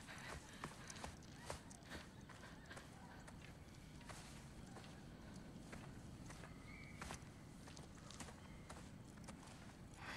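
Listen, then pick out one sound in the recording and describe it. Footsteps crunch on dry, gravelly ground.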